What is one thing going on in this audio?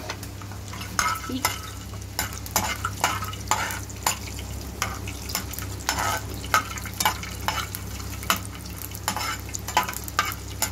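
A metal spatula scrapes and clinks against a frying pan as almonds are stirred.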